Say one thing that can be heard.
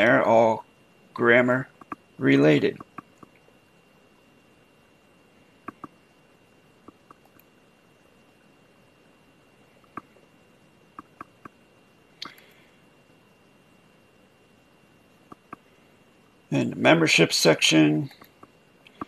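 A man speaks into a close microphone in short bursts.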